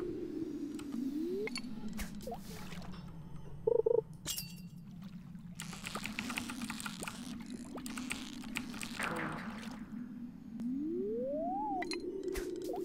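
A fishing rod casts with a quick whoosh.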